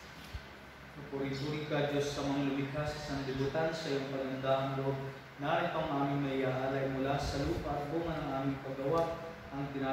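A man speaks steadily through a microphone in an echoing room.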